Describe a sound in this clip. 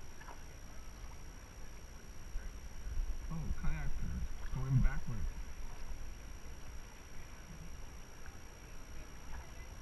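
Paddles splash in a flowing river.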